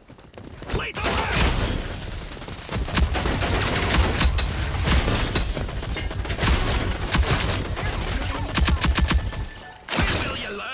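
Rapid gunfire rattles in bursts.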